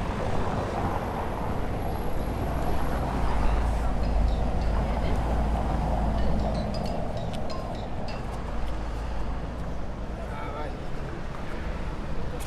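Wind blows across an open outdoor space.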